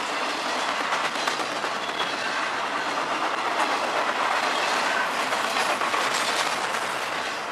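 Train wheels clack rhythmically over the rail joints.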